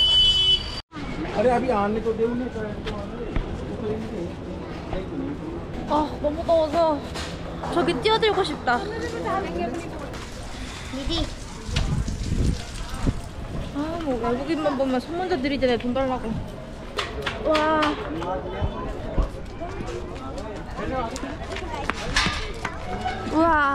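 A young woman talks close to the microphone in a lively voice.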